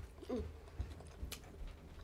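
A young woman slurps noodles close up.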